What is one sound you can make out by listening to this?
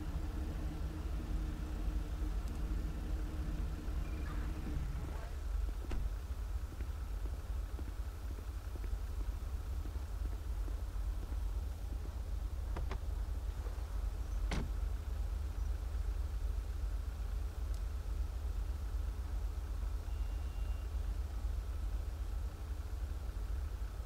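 Car engines idle with a low, steady rumble.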